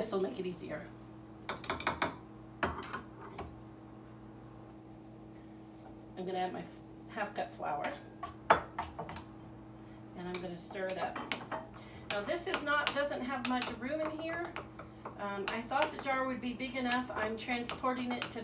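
Glass jars and lids clink and tap on a countertop.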